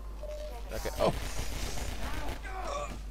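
A gun fires with a sharp bang.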